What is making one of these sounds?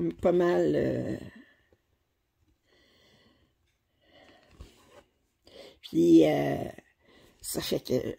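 Thread rasps softly as it is pulled through stiff fabric.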